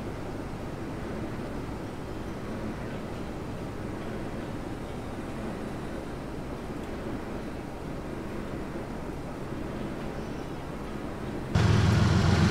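Freight cars rumble and clack steadily along the rails.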